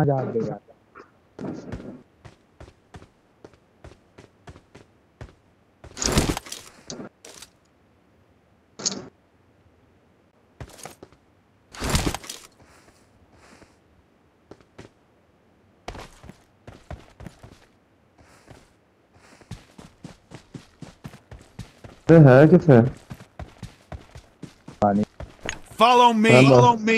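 Footsteps crunch on dirt and grass at a steady pace.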